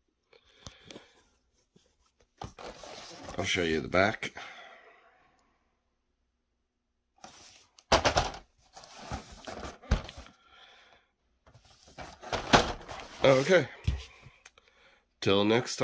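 Plastic wrapping crinkles as a box is turned over in the hands.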